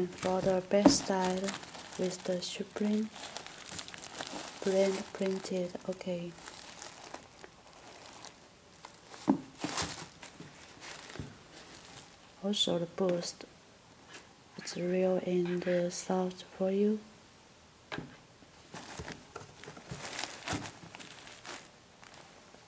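Hands handle a shoe, rustling and tapping against it up close.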